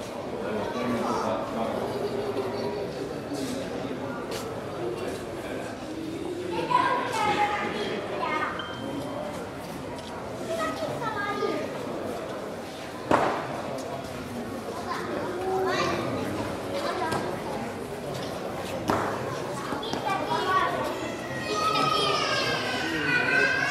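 A crowd of adult men and women talk and murmur nearby in a large echoing hall.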